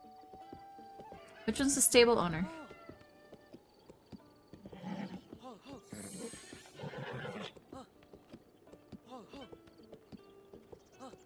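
A horse's hooves thud in a quick rhythm.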